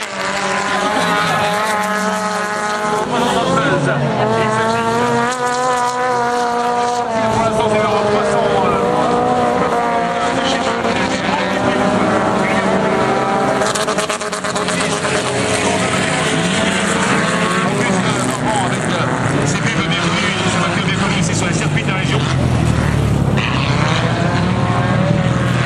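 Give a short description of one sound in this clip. Rally car engines roar and rev up and down, some distance away.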